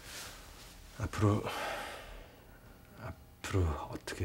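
A man speaks in a low, quiet voice close by.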